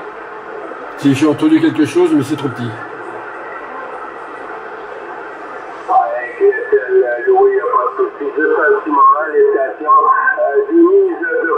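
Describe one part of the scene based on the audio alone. A man's voice crackles through a radio loudspeaker.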